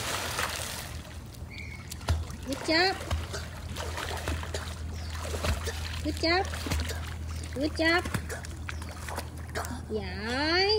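Water splashes as a young boy swims.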